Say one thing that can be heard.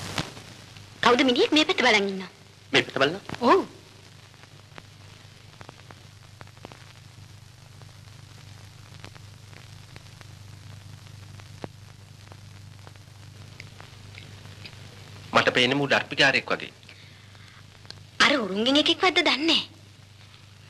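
A woman speaks sharply nearby.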